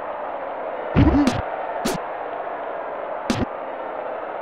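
Football players collide with sharp thuds.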